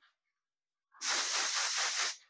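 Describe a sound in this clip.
A spray gun hisses as it sprays.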